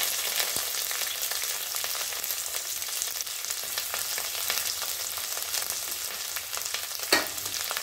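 Onions sizzle and crackle in hot oil in a pan.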